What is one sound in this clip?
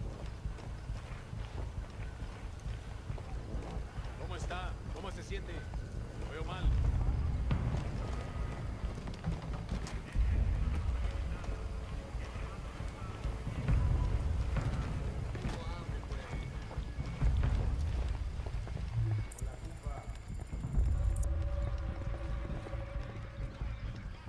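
Footsteps crunch softly on the ground.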